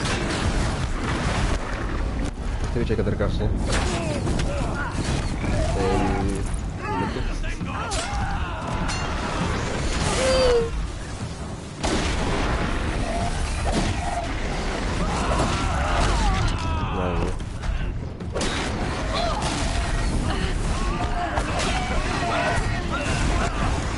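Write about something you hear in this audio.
Explosions boom in quick bursts.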